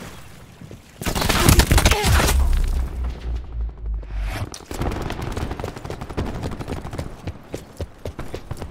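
Rapid gunfire bursts out loudly.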